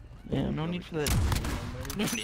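A sniper rifle fires a loud shot.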